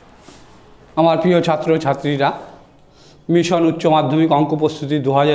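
A man speaks calmly and clearly into a close headset microphone.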